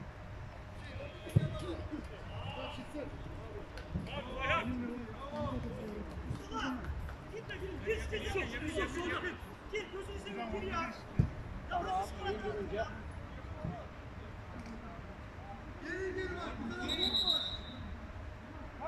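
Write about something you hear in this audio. Young men shout to each other outdoors, some way off.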